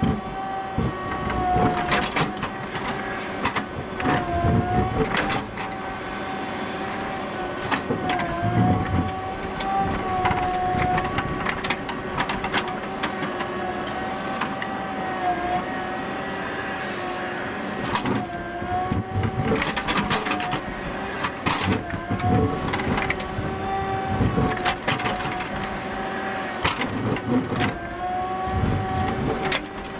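A diesel engine hums steadily, rising and falling as it works.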